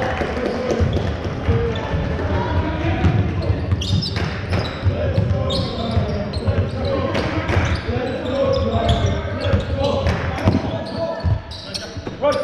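Players shout and call out to each other across the hall.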